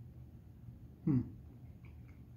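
A young man makes a short, low vocal sound close by.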